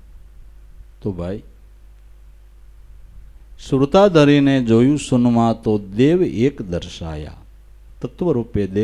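An older man sings slowly and expressively into a microphone.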